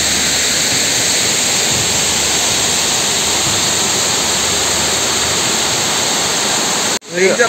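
A stream rushes and splashes steadily nearby.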